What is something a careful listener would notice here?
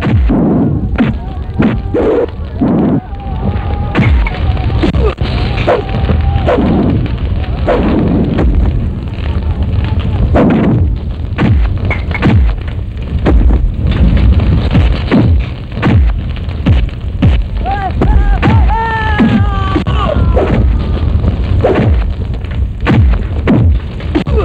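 Punches and kicks land with loud thuds.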